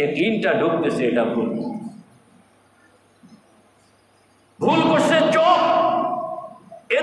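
An elderly man speaks with animation into a close microphone, pausing briefly between phrases.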